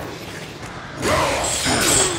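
A magical blast whooshes and crackles.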